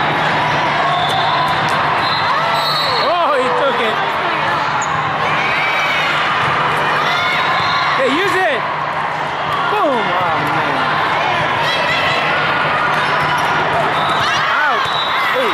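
A volleyball is hit with a dull thump.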